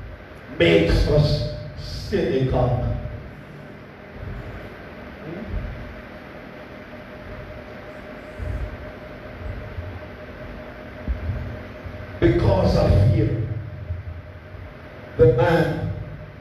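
An elderly man preaches with animation through a microphone and loudspeakers in an echoing hall.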